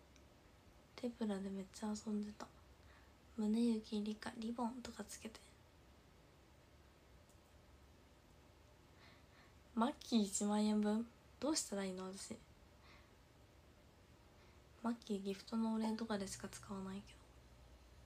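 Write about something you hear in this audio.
A young woman speaks calmly and close to the microphone, in short bursts with pauses.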